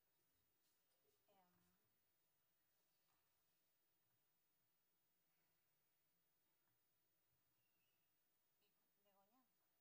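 A young woman speaks briefly and quietly into a microphone.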